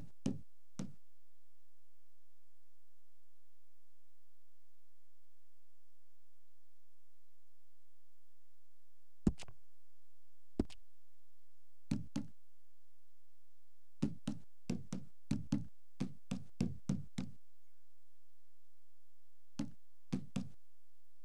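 Short soft clicks sound one at a time as menu selections change.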